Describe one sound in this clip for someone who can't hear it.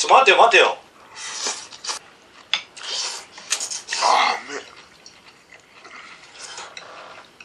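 A young man slurps noodles noisily.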